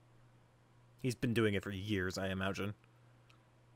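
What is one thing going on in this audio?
A young man speaks briefly with animation close to a microphone.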